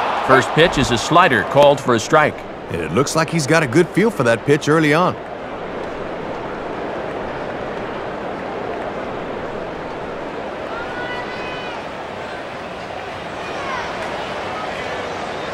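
A large crowd murmurs steadily in the stands.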